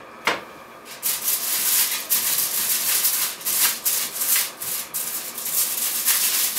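Aluminium foil crinkles and rustles under pressing hands.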